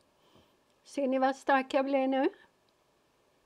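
A middle-aged woman speaks briefly and clearly into a close microphone.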